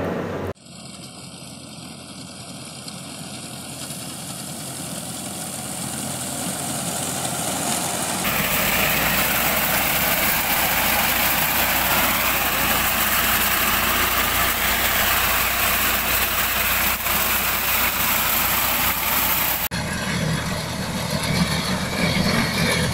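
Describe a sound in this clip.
A tractor engine rumbles steadily as it approaches.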